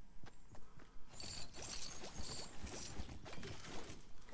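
A short chime sounds as ammunition is picked up.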